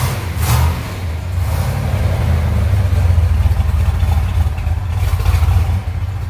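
A car engine idles with a deep, loping rumble close by.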